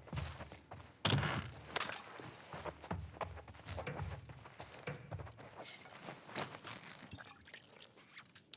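Items rattle and clink as a crate is rummaged through.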